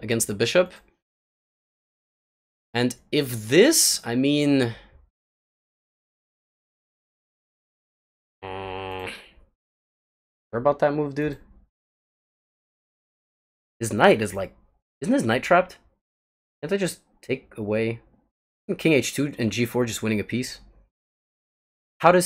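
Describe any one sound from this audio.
A young man talks calmly and thoughtfully into a close microphone, with pauses.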